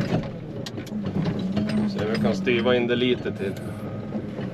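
Hydraulics whine as a loader's bucket arm moves.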